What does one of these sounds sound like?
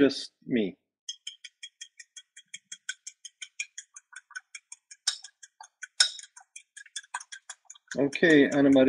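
Greens sizzle and crackle in a frying pan.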